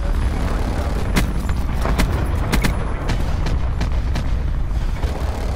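Explosions rumble on the ground.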